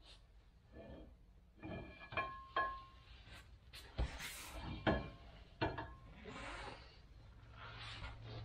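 A long metal shaft scrapes and rattles as it slides out.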